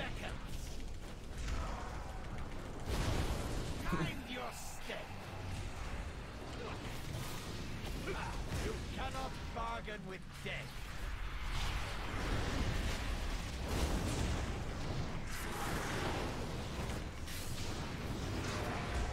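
Spell effects crackle and boom in a fast battle.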